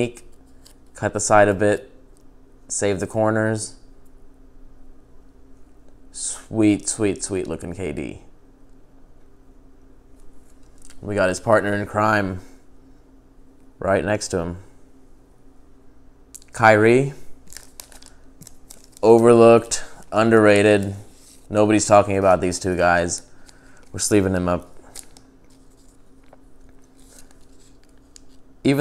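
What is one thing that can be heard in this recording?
Plastic card sleeves rustle and crinkle in hands.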